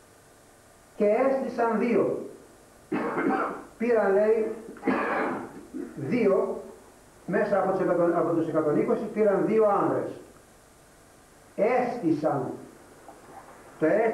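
An elderly man reads aloud in a calm, measured voice, in a room with some echo.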